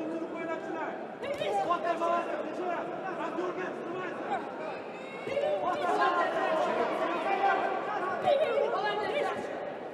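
Boxing gloves thump against a boxer's body and head.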